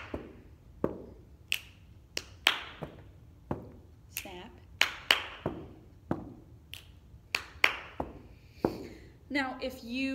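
A young woman beatboxes close to a microphone, with sharp clicks and hisses.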